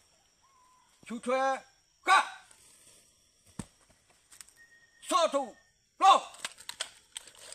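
A man shouts drill commands loudly outdoors.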